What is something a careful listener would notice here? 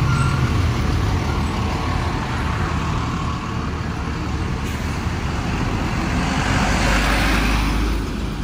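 A truck engine idles with a low rumble nearby.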